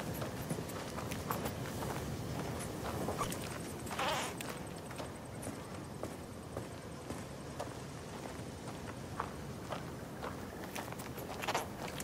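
Footsteps crunch on dry dirt and grass.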